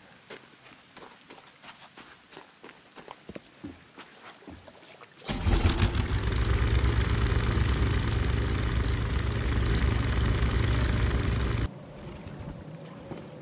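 Footsteps thud on wooden boards and dirt.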